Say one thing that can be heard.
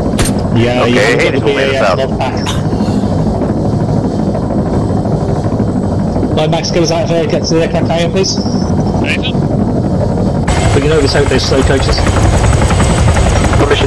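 A helicopter's rotor thumps and its engine roars steadily.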